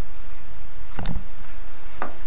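A car door unlatches and opens.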